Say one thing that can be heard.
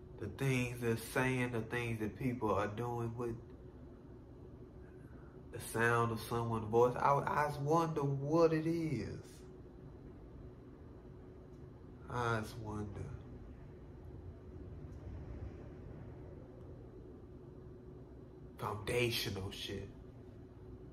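A young man talks calmly and close by, in short bursts with pauses.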